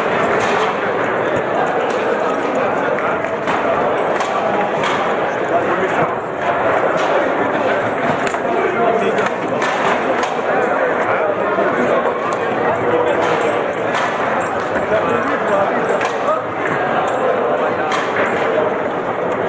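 Foosball rods rattle and spin in quick bursts.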